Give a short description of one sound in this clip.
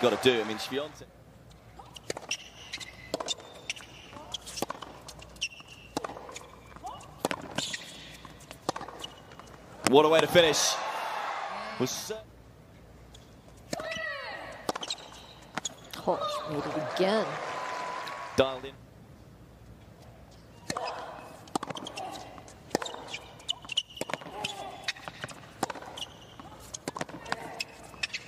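A tennis ball is struck sharply back and forth.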